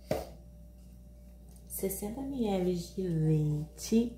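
Milk pours from a jug into a bowl.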